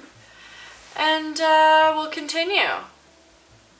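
A young woman sings a short melody.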